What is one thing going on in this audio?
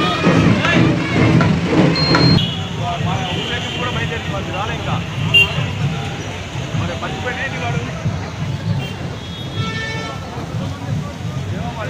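A crowd of people talks and calls out nearby outdoors.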